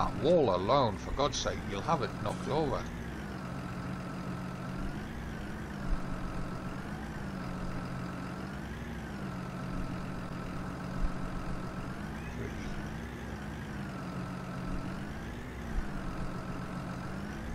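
A tractor engine hums steadily, its pitch rising and falling as it revs.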